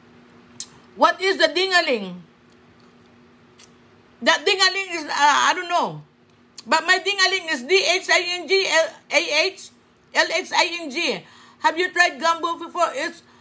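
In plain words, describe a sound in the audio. A middle-aged woman talks animatedly, close up.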